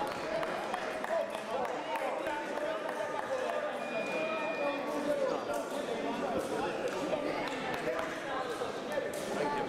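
A man talks calmly in a large echoing hall.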